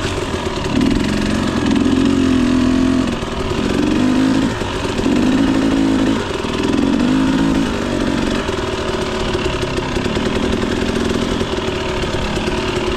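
A motorbike engine hums and revs in bursts while riding.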